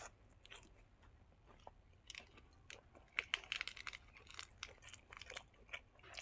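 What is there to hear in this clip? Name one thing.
Lettuce leaves crinkle and rustle in hands.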